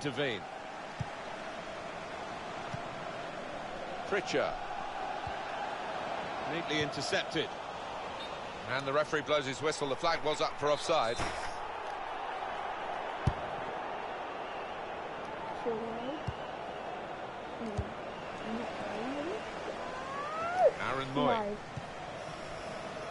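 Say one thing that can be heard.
A stadium crowd murmurs steadily throughout.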